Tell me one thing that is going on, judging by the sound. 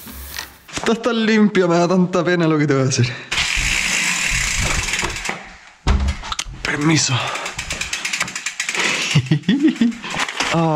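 A bicycle rattles and its freewheel clicks as it is wheeled along.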